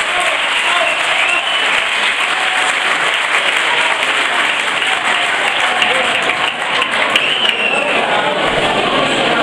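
Women in a crowd chatter and cheer loudly.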